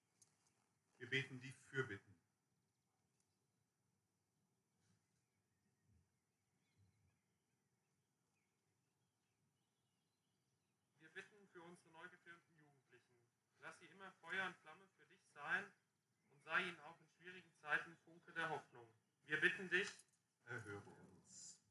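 A man speaks calmly through a loudspeaker outdoors.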